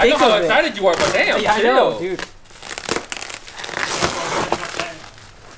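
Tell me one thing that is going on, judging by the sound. Bubble wrap crinkles and rustles as it is handled.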